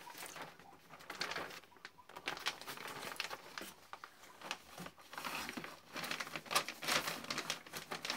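A plastic bag crinkles and rustles loudly.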